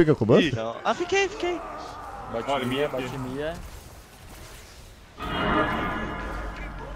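Magic blasts and hits from a video game whoosh and crackle.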